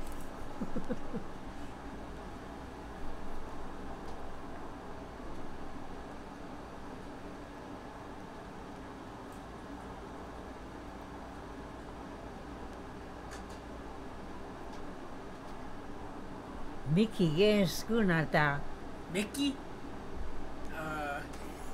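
An elderly woman speaks calmly nearby.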